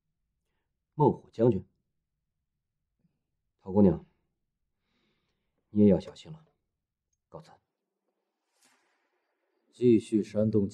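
A woman speaks calmly in short phrases.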